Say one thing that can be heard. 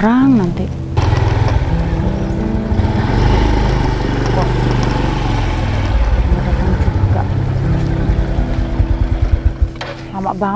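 A motorcycle engine rumbles as it rides up and slows to a stop.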